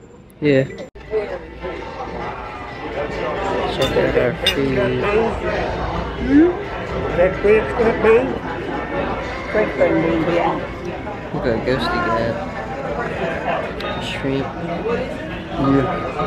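Many people chatter in a busy, crowded room.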